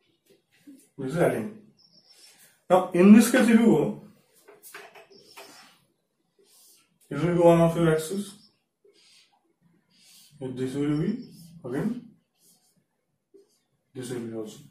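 A young man speaks calmly, explaining.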